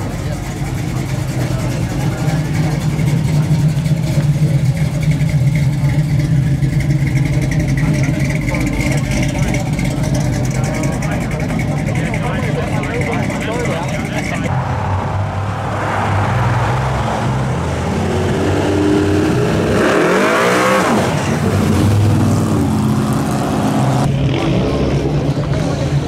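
A car engine idles and revs with a deep, loud rumble.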